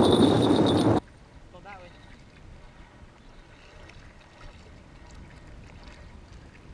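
Small waves lap against rocks at the water's edge.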